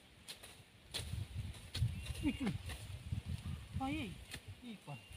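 A worker slashes at dry grass with short, sharp cuts.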